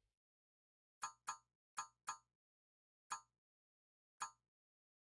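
Short menu clicks tick as options scroll.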